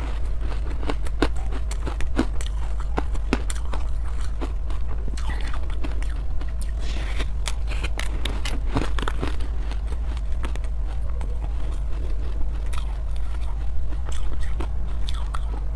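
A young woman bites and chews crunchy food close to a microphone.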